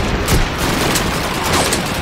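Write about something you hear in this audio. A submachine gun fires a burst.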